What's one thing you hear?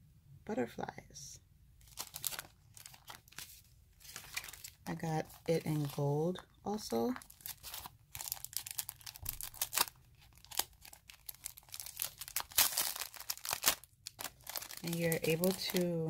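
Plastic sticker sheets crinkle and rustle as they are handled.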